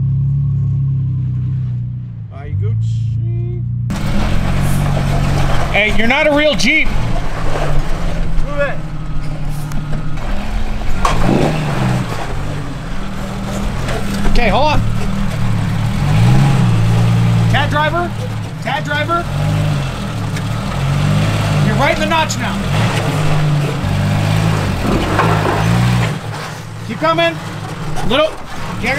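An engine rumbles and revs.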